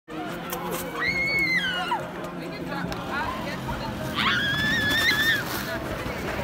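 Children shriek with delight in the distance, outdoors.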